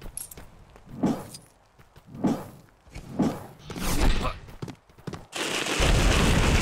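Magic spells zap and crackle in bursts.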